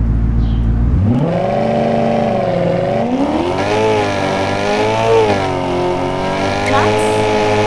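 A car engine revs up and changes pitch as it accelerates.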